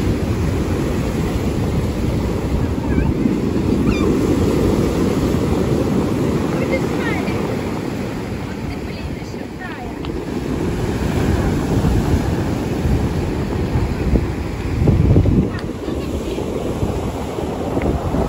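Pebbles rattle and clatter as the water drags back.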